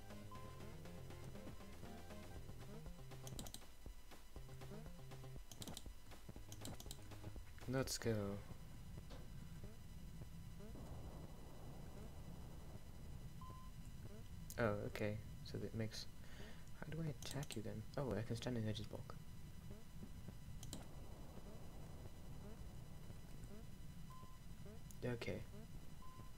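Simple retro game music plays with low beeping notes.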